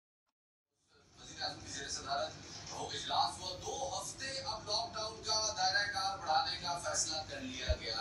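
A man reads the news steadily through a television loudspeaker.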